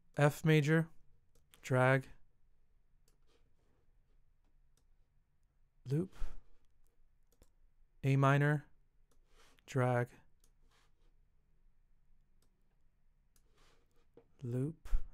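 An acoustic guitar plays short strummed chords, with pauses between them.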